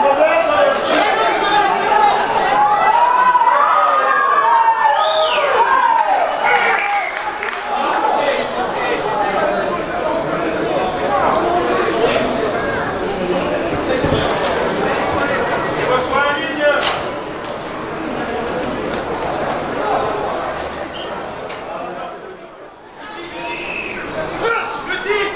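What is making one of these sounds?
Men shout to each other on an outdoor sports field.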